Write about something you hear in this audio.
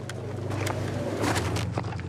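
Footsteps scuff on dry dirt.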